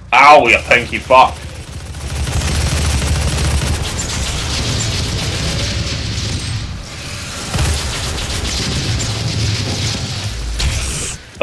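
A heavy gun fires in rapid, booming bursts.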